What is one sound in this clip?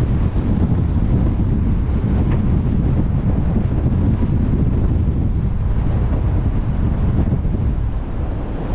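Sea water rushes along a ship's hull.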